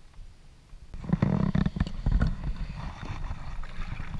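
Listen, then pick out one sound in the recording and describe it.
A kayak paddle splashes and dips into water.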